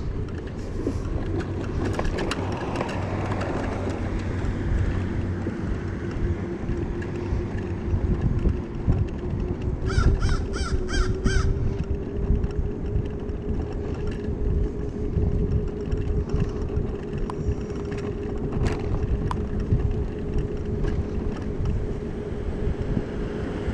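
Wind rushes and buffets against the microphone.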